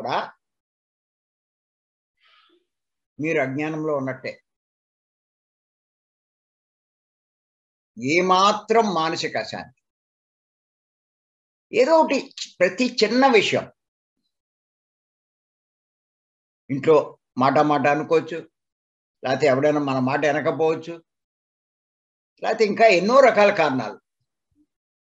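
An elderly man speaks with emphasis in short bursts through a microphone, as on an online call.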